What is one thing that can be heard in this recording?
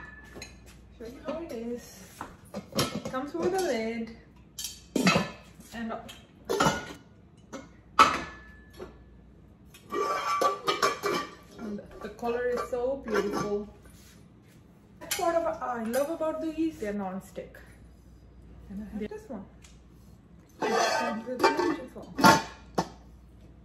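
Metal pots and lids clink and clatter.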